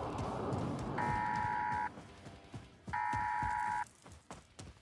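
An electronic alert tone sounds twice.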